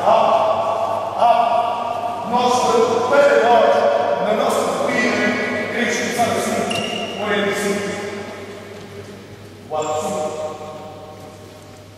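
Young spectators shout and cheer in a large echoing hall.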